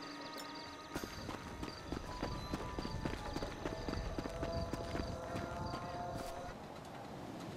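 Footsteps run quickly over dry grass and dirt.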